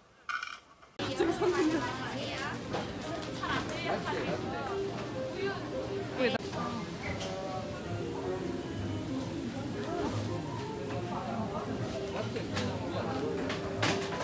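Many people chatter in a busy, echoing room.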